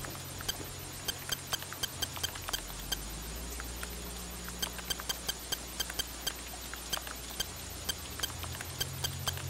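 Electronic clicks tick rapidly and irregularly.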